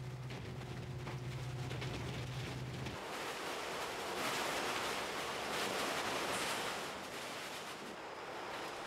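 Garbage tumbles and rustles as it falls down a chute.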